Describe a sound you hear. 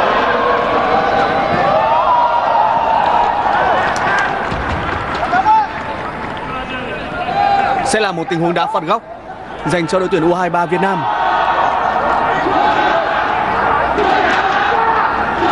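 A large stadium crowd cheers and chants loudly outdoors.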